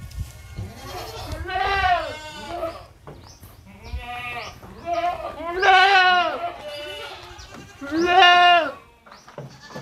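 Goats bleat loudly nearby.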